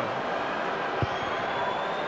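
A boot thuds against a ball.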